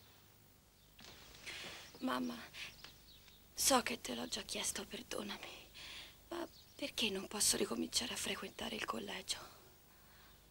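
A girl answers in a weak, quiet voice.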